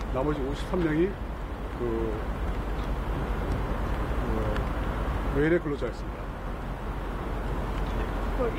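A middle-aged man speaks slowly and haltingly into microphones, with pauses.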